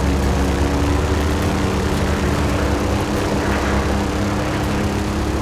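Tyres crunch and rumble over snowy gravel.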